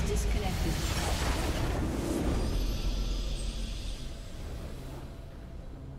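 A triumphant fanfare swells at the end.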